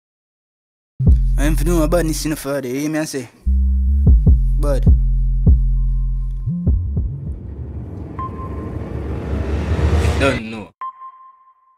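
A man raps over a booming bass beat.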